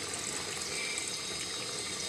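Water pours into a pot of stew.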